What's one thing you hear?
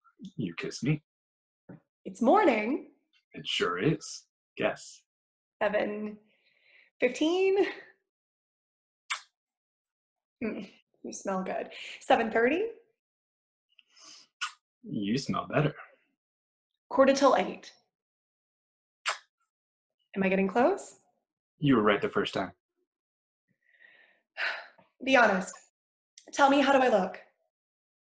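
A woman reads lines aloud with expression over an online call.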